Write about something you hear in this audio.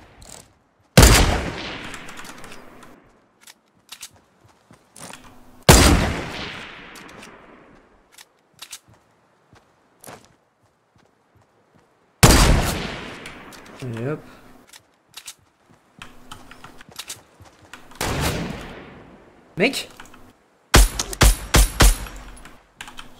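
Loud gunshots crack and echo away.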